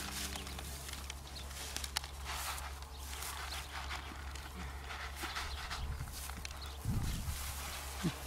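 A calf licks and slurps feed from a tray close by.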